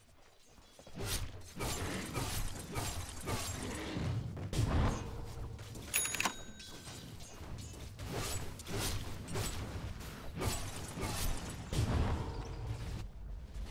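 Magic blasts and weapon strikes clash in a busy fantasy battle.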